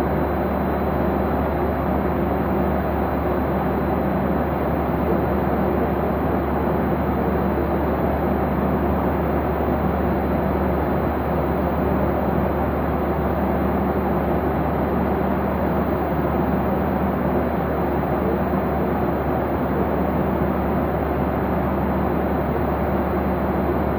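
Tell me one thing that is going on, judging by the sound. A jet engine roars steadily, heard from inside an aircraft cabin.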